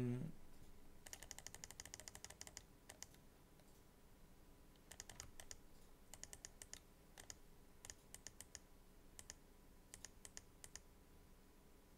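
Keys clack rapidly on a computer keyboard.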